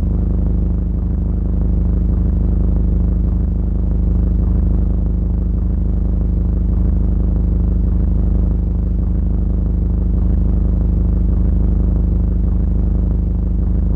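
A car engine hums steadily at a low pitch.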